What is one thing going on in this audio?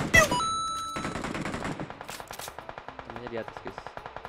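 Footsteps patter quickly in a video game.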